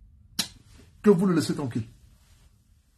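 A man speaks calmly and close to a phone microphone.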